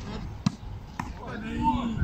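A volleyball is struck with a sharp slap.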